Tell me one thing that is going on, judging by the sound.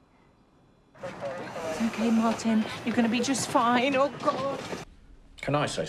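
A woman speaks urgently.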